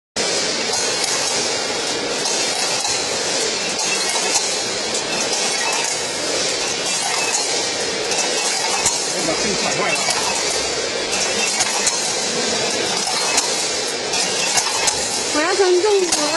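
Small dry pieces pour and rattle through metal chutes.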